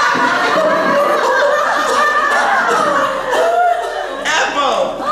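A group of men and women laugh loudly together close by.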